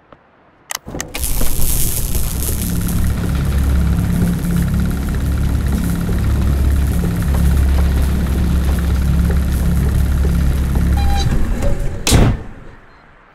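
A vehicle's engine hums loudly and steadily, then cuts off.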